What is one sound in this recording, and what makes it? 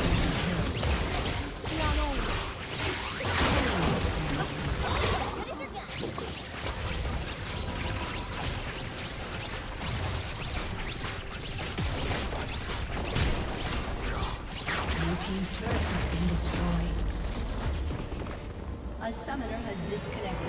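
Game spell effects whoosh, crackle and burst in a busy fight.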